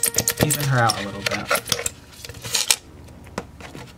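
A knife scrapes the peel of an orange.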